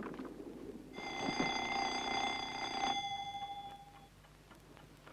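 An alarm clock rings loudly.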